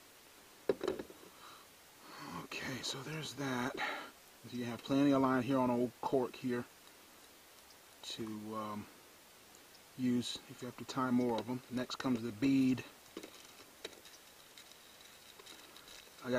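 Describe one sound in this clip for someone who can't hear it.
Small plastic parts rattle and click in a plastic box being handled.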